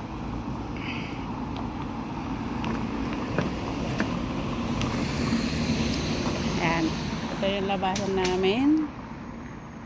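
A car drives past on a paved road.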